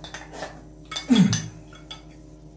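A young man lets out a satisfied sigh close by.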